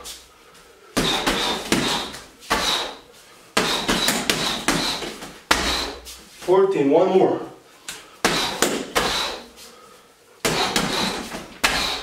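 Punches and kicks thud heavily against a punching bag.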